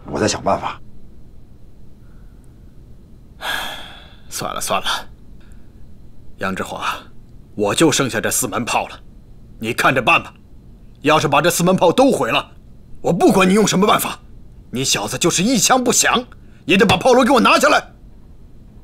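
A man speaks in a low, tense voice up close.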